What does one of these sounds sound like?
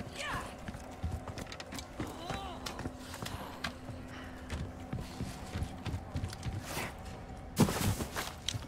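Heavy footsteps thud quickly on wooden planks.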